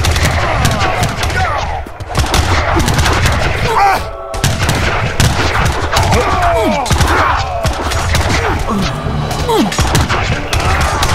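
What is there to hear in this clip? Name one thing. Game soldiers clash in battle with rapid clanks and gunshots.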